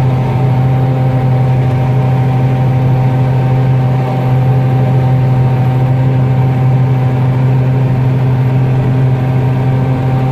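A harvester reel whirs and rattles as it sweeps through dry crop.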